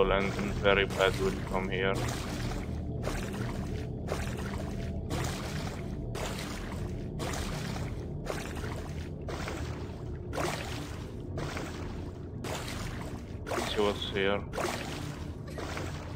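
Feet wade and splash through shallow water.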